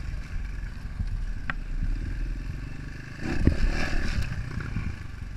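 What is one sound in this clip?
A dirt bike knocks and thumps over rough ground.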